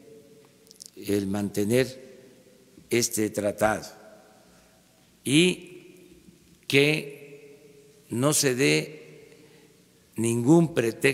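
An elderly man speaks slowly and deliberately into a microphone, with long pauses between phrases.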